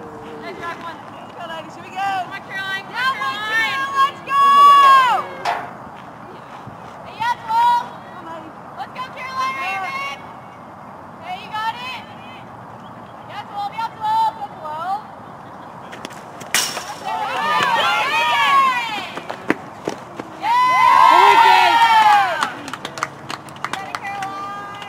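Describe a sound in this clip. Young women shout and cheer from nearby.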